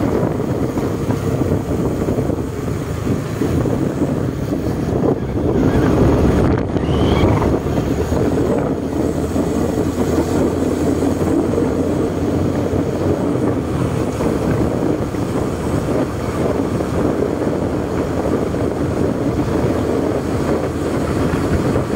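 Wind rushes loudly past on a fast ride outdoors.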